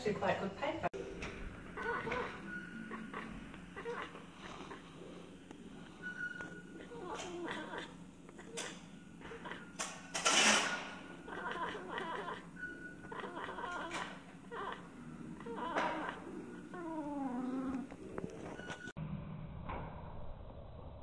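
A cat makes slowed, low, drawn-out chirping chatters.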